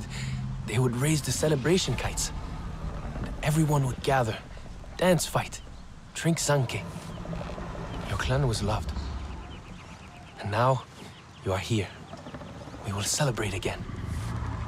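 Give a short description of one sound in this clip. A young man speaks calmly and closely.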